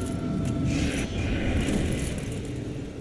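A magical blast crackles and whooshes.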